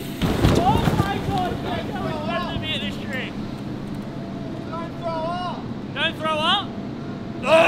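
A young man talks and exclaims excitedly nearby.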